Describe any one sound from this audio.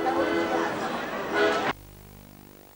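Folk music plays.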